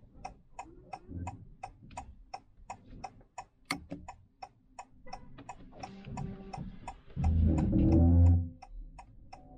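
A man talks calmly inside a car.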